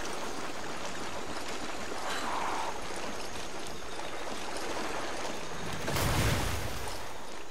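Water splashes and sloshes as someone wades through it.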